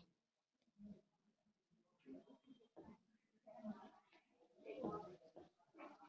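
A cloth rubs across a board.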